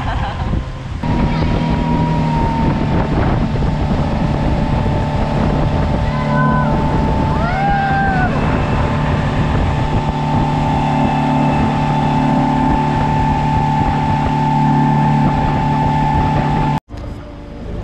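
Water rushes and splashes in a boat's wake.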